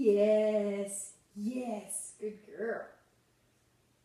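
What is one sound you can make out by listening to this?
A woman speaks to a dog in a high, cheerful voice, close by.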